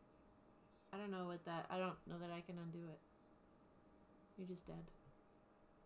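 A second woman answers calmly over an online call.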